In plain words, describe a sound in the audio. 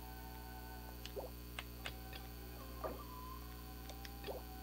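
Short soft electronic clicks and chimes sound as menu items are selected.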